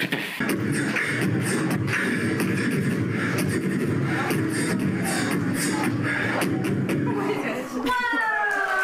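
A young man beatboxes loudly into a microphone.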